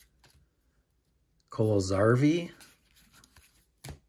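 Trading cards rustle and slide against each other in a person's hands.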